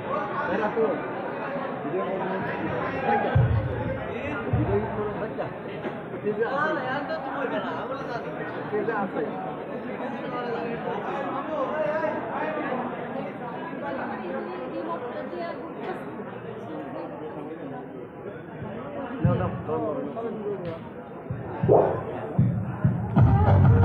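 Young men talk and call out together in a large echoing hall.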